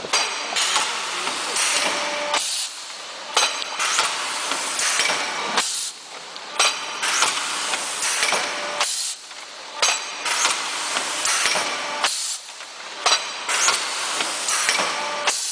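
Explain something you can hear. A forming machine hums and clanks in a steady repeating cycle.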